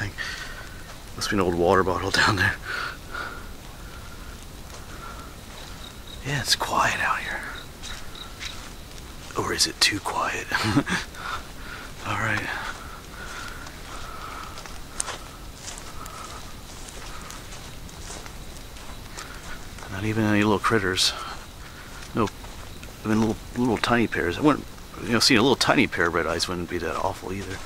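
Footsteps tread slowly along a dirt path.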